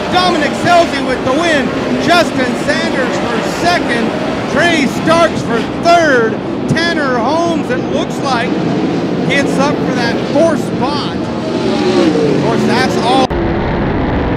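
Several race car engines roar and rise and fall in pitch as they speed around a dirt track.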